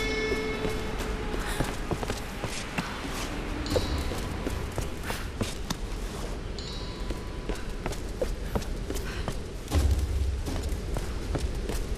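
Footsteps patter quickly over stone.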